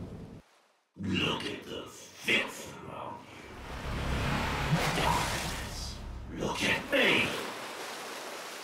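A man shouts with anger and menace, close up.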